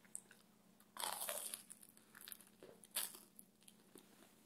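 Crisp toast crackles as hands tear it apart.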